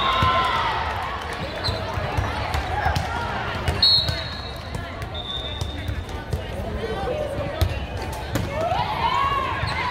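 Young women call out to each other in a large echoing hall.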